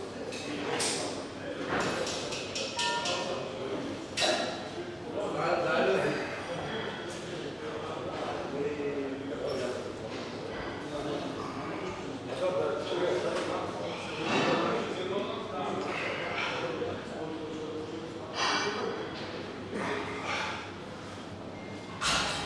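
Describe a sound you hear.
Metal weights clank softly.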